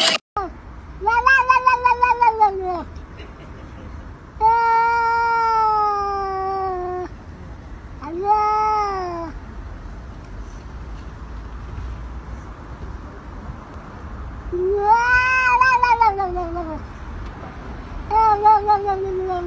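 A cat meows loudly and insistently, with long drawn-out cries.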